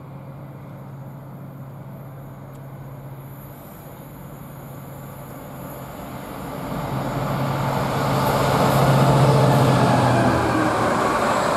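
A diesel locomotive engine hums as it approaches and passes close by.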